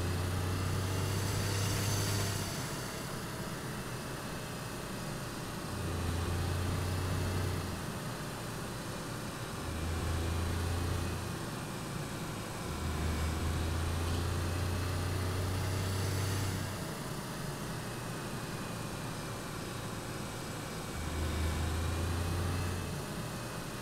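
Tyres roll on tarmac.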